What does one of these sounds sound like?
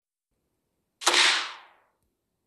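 A short, bright game sound effect bursts out and quickly fades.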